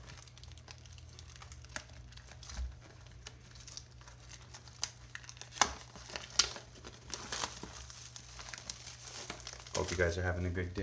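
Plastic wrap crinkles and tears as hands peel it off a box.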